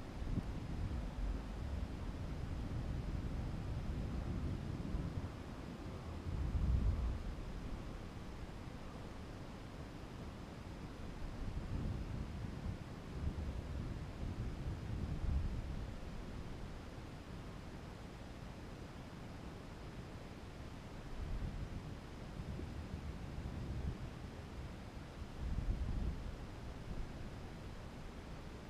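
Wind buffets the microphone in low, rumbling gusts.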